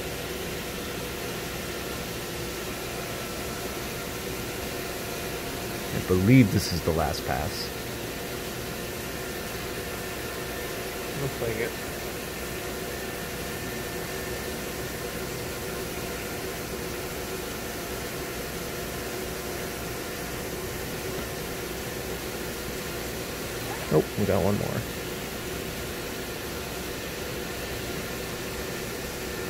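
Coolant sprays and splashes steadily.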